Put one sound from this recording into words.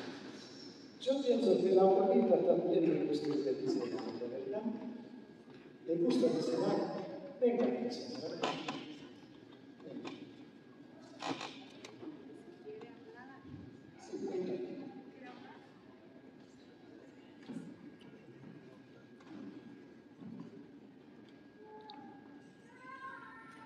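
An elderly man speaks calmly through a microphone in a large echoing hall.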